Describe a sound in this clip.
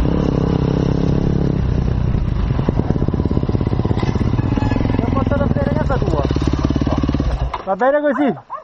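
A dirt bike engine roars steadily up close.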